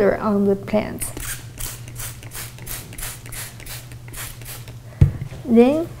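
A spray bottle hisses in quick bursts.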